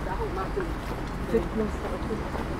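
A woman talks briefly nearby.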